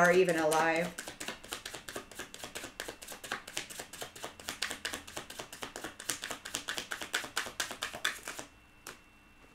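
Cards shuffle with rapid, papery riffling clicks.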